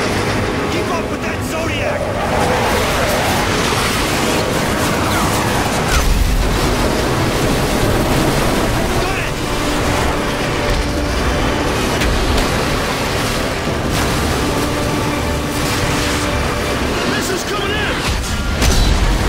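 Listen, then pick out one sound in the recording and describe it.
Water splashes and churns against a boat's hull.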